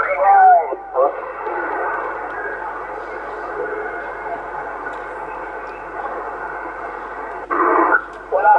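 Radio static hisses and crackles from a loudspeaker.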